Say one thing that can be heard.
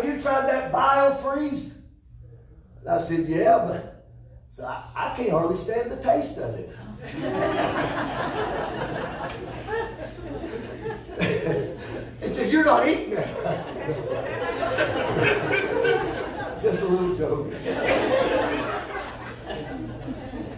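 An older man speaks with animation to an audience.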